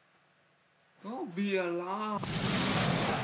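A man speaks close to a microphone in a drawn-out, sing-song voice.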